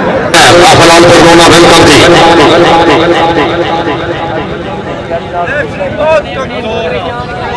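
A crowd of men talks and calls out outdoors.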